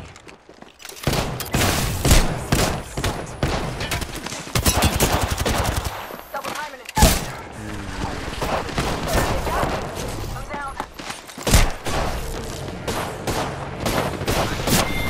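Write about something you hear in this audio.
Gunfire bursts rapidly.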